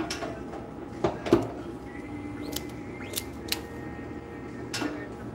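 Clicks and knocks sound from a printing press.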